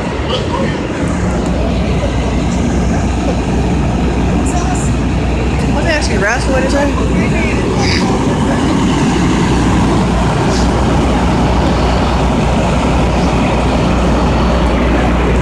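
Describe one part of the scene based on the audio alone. A fire engine idles with a low, steady rumble close by.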